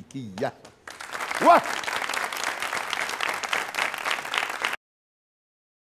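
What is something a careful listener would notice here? A studio audience claps and cheers loudly.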